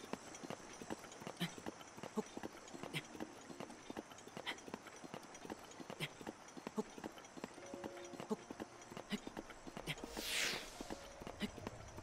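A climber's hands and feet scrape and tap rhythmically on stone.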